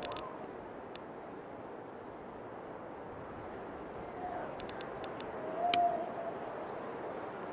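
Wind blows steadily through a snowstorm.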